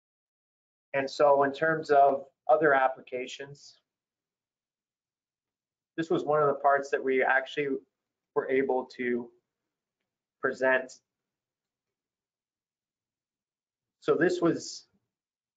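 A man speaks calmly through a microphone, as in an online call, in short bursts with pauses.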